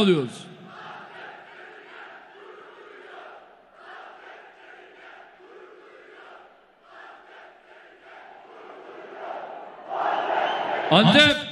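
A crowd chants and cheers in a large echoing hall.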